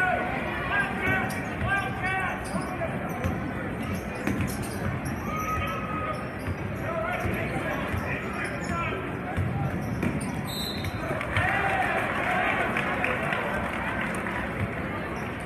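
A crowd cheers and chants in a large echoing gym.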